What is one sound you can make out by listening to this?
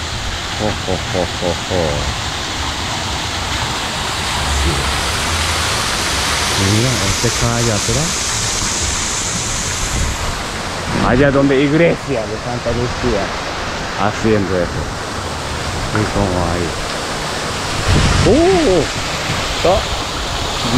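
Wind rushes outdoors.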